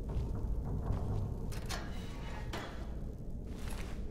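A metal barred door creaks open.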